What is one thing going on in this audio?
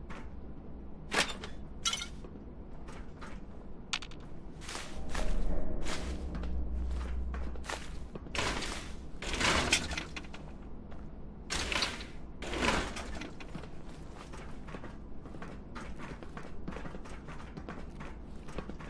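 Footsteps crunch over debris and gravel indoors.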